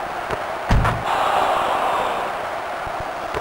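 A crowd cheers briefly.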